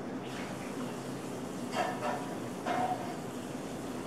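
Tea pours into a mug.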